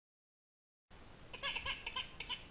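A baby squeals and babbles loudly close by.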